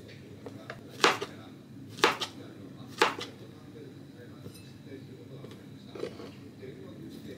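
A knife slices through soft fruit and taps on a cutting board.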